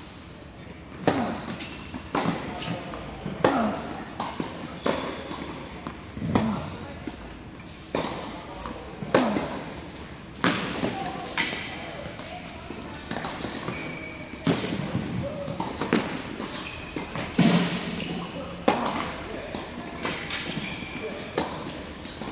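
Tennis balls are struck with rackets, echoing in a large indoor hall.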